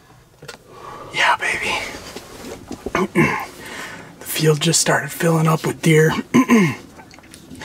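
A man speaks quietly and close by.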